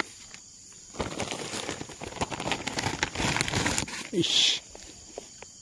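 Soil and roots rustle and crumble as a root ball is lifted from the ground.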